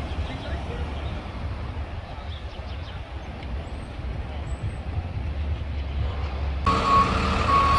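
A pickup truck drives past on a city street.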